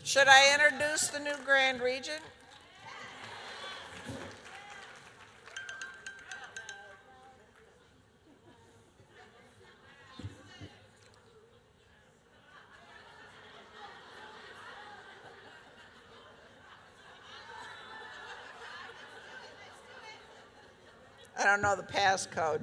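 An older woman speaks calmly through a microphone in a large echoing hall.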